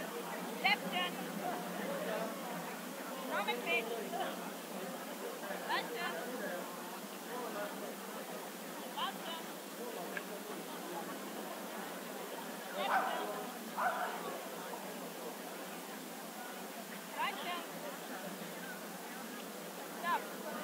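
A crowd murmurs outdoors in the open air.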